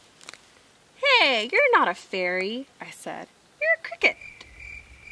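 A young woman reads aloud expressively, close by.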